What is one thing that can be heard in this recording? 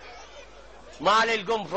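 A man cries out in a drawn-out, wailing voice.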